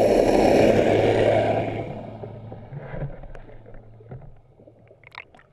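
Bubbles rush and gurgle underwater, then slowly fade.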